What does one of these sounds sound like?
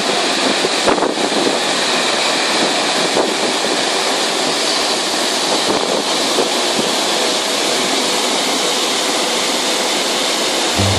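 A large waterfall roars steadily outdoors.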